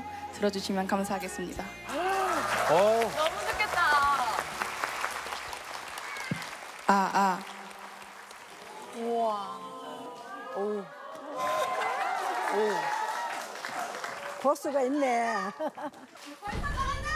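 A young woman sings into a microphone over a loudspeaker.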